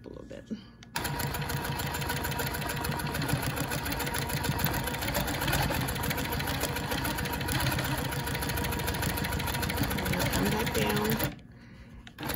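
A sewing machine stitches with a fast, steady rattle.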